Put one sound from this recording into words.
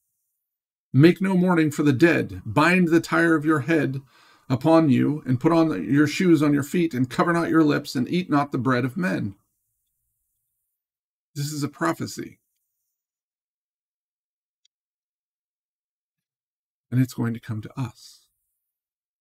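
A middle-aged man speaks calmly and closely into a microphone, with long pauses.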